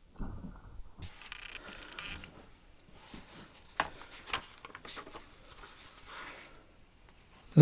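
Paper pages rustle as a book is leafed through.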